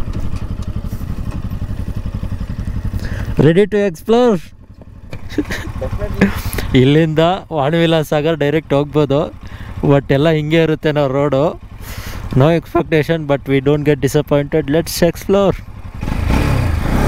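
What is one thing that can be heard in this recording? A motorcycle engine idles with a low steady rumble.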